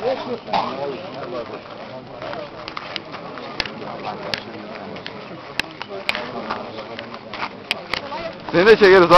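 Elderly men talk and greet each other outdoors among a crowd.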